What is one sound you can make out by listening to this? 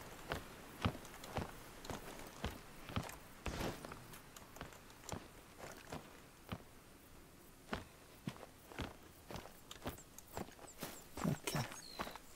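Footsteps thud on wooden boards at a steady walking pace.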